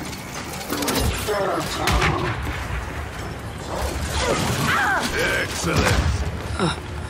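Explosions thud with deep booms.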